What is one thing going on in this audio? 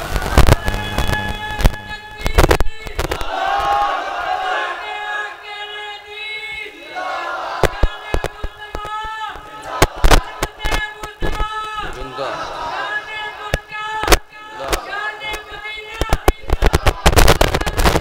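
A man sings a melodic chant loudly through a microphone and loudspeakers.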